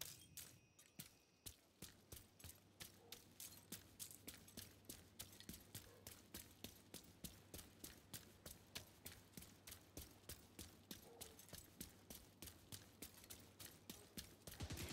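Footsteps run quickly and steadily over hard ground.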